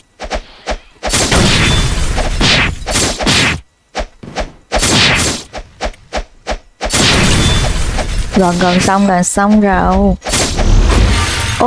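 Sword swooshes and slashes burst out in quick succession.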